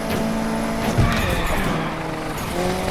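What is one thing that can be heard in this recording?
Car tyres screech while drifting around a corner.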